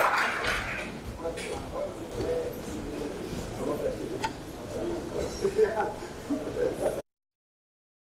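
A man talks at a distance in a large echoing hall.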